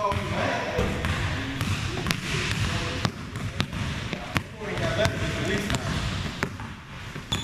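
A basketball bounces on a hardwood floor, echoing in a large gym.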